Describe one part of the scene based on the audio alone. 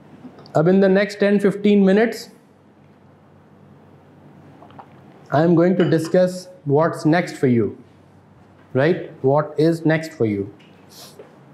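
A middle-aged man speaks calmly and clearly into a close microphone, in short bursts.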